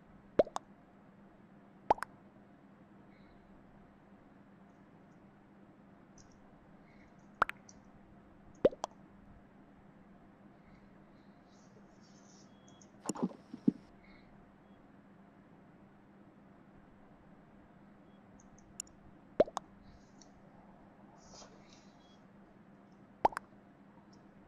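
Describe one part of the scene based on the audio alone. Short electronic chat blips sound now and then.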